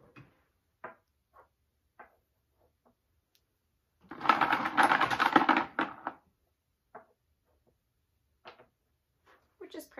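A child clacks small plastic toys together on a hard surface.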